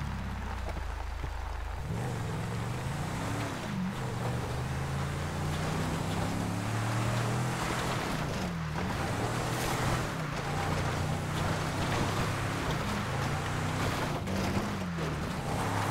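Tyres crunch over a gravel dirt track.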